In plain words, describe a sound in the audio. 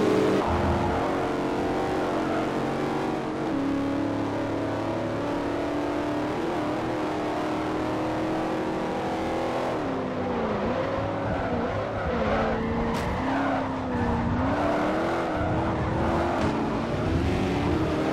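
A race car engine roars steadily at high revs.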